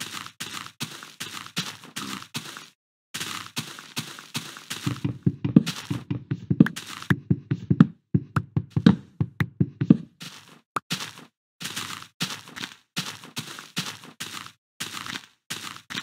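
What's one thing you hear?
Footsteps crunch on grass in quick steps.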